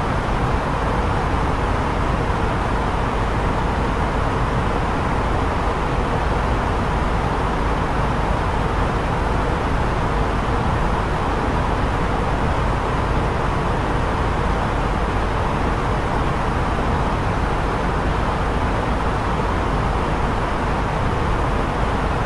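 A jet airliner's engines and rushing air roar steadily in flight.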